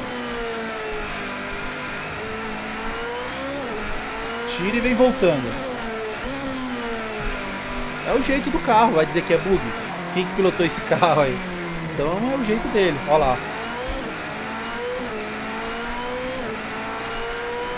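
A racing car engine revs up and down through gear changes.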